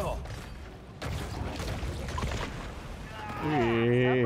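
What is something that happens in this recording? Water splashes and churns heavily.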